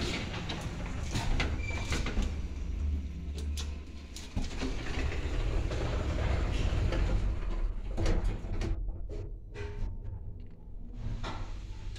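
An elevator hums and rumbles steadily as it moves.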